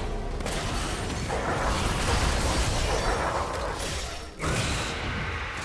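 Fantasy battle spell effects whoosh and crackle.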